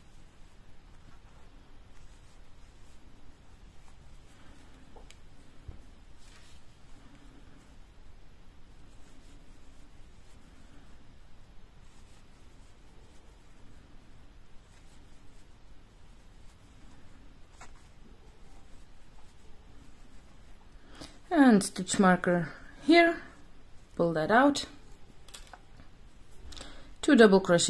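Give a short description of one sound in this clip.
A crochet hook softly rustles and clicks through yarn.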